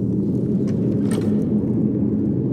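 A wooden chest lid opens with a short creak.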